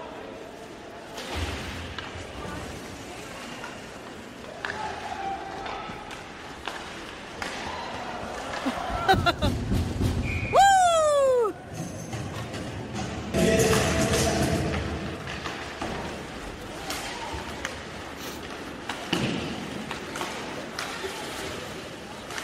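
Spectators chatter and cheer in a large echoing arena.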